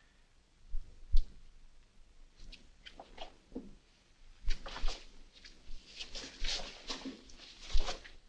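A man shuffles and scrapes across a floor.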